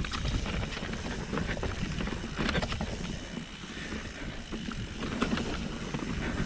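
A bicycle frame clatters over bumps.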